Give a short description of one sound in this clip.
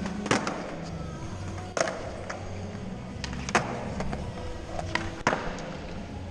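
Skateboard wheels roll and rumble over smooth concrete.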